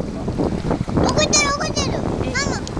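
A young child speaks close by in a high voice.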